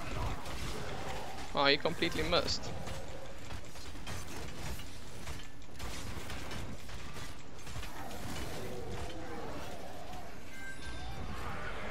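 Magic blasts crackle and boom in a fantasy battle.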